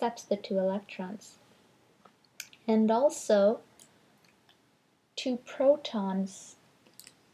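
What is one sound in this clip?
A woman speaks calmly and clearly close by, as if teaching.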